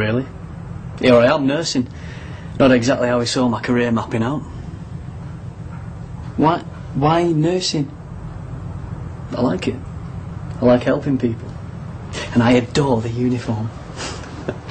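Another young man answers in a relaxed, joking tone.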